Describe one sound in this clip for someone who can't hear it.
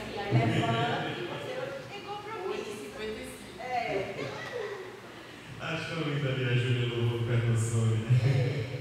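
A man speaks animatedly into a microphone, heard through a loudspeaker.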